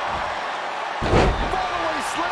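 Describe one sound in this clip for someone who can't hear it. A body slams with a heavy thud onto a wrestling mat.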